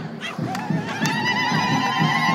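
Women ululate loudly in a crowd.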